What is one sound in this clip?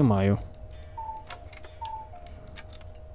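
A computer beeps in short tones.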